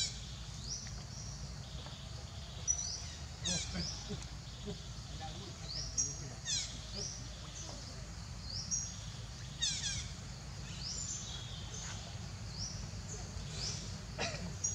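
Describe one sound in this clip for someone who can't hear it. Water splashes softly as a monkey wades through a shallow stream.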